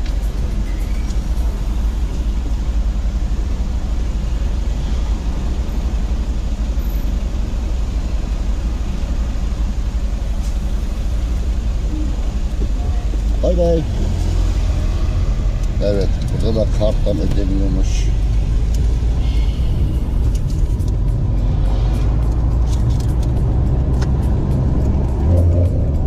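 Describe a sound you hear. A car engine hums steadily inside the cabin and grows louder as the car speeds up.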